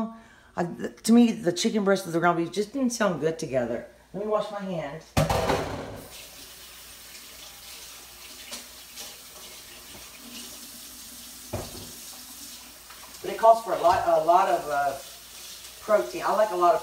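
Pieces of chicken sizzle softly in a hot frying pan.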